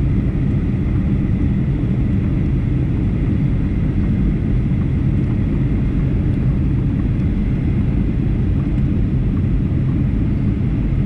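A jet engine roars steadily inside an airliner cabin.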